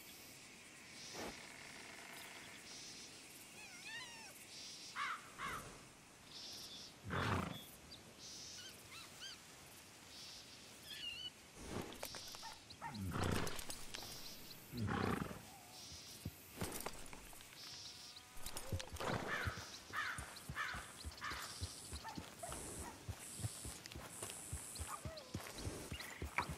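A horse's hooves thud softly on grass as it walks.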